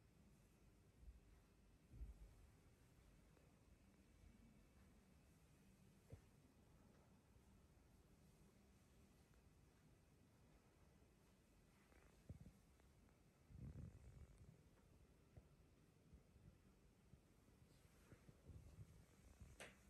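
Legs swing and thud softly on a rug on the floor.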